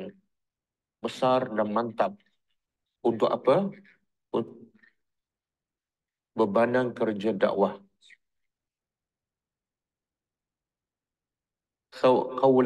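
An older man speaks calmly and slowly into a close microphone, with long pauses.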